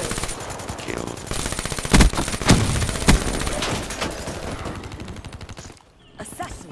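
A gun fires in rapid bursts with a few loud blasts.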